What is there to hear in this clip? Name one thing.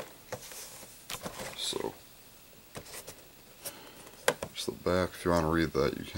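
A cardboard box is handled with light knocks and rustles.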